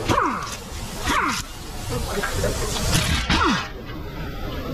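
An impact wrench rattles in short bursts.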